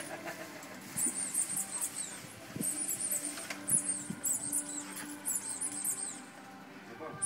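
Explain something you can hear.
A squeaky dog toy squeaks repeatedly.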